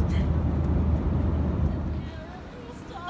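A steady low engine drone hums inside an aircraft cabin.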